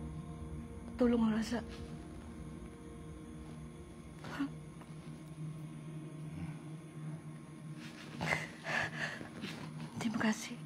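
A middle-aged woman speaks emotionally, close by.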